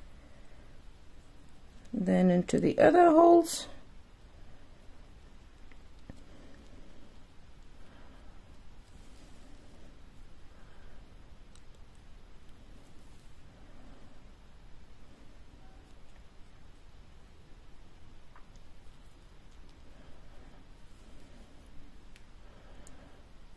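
Thread rustles softly as it is pulled through knitted yarn.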